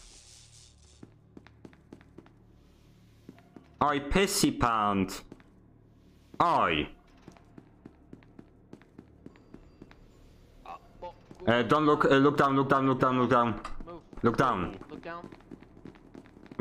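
Footsteps tap on a hard metal floor.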